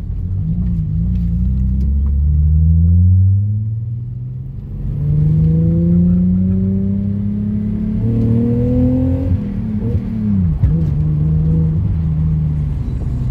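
A car engine revs up and down as it shifts gears.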